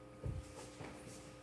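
A child drops onto a leather sofa with a soft thud.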